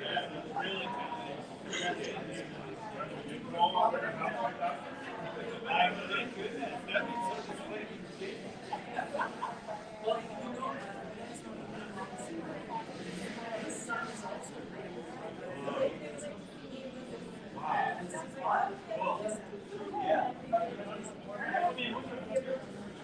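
Men and women chatter in a room.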